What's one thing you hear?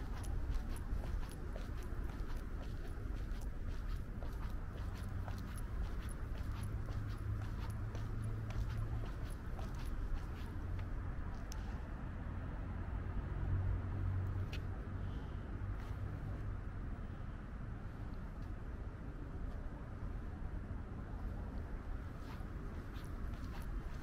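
Footsteps tap steadily on a hard walkway outdoors.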